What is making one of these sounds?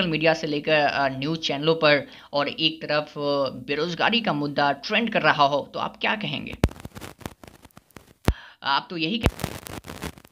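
A young man speaks with animation into a microphone close by.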